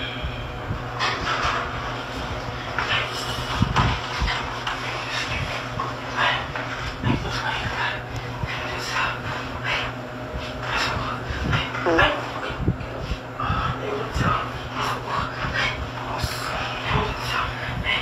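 A young man groans and pleads in distress, close by.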